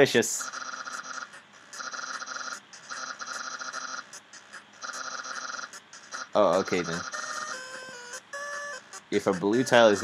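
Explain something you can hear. Short electronic blips chirp rapidly in bursts.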